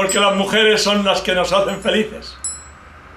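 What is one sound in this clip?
An elderly man sings cheerfully close by.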